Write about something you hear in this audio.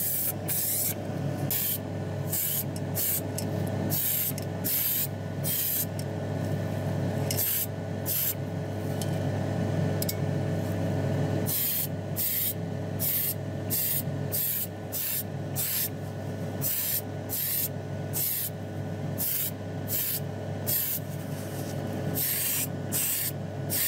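A sandblaster hisses loudly in short, repeated bursts.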